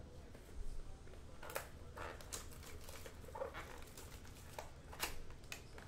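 Plastic wrap crinkles and tears as hands open a pack.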